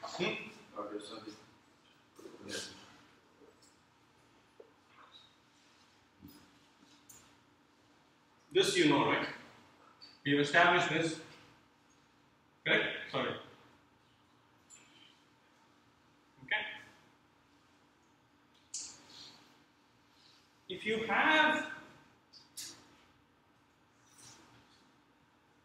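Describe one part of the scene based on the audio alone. A man speaks calmly, pausing often.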